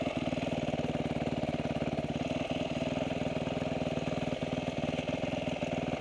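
A motorbike engine putters steadily at low speed.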